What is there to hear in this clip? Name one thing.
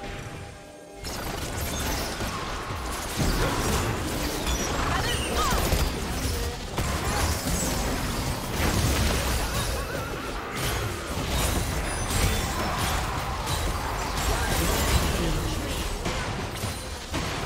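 Video game spells whoosh, crackle and burst in a busy fight.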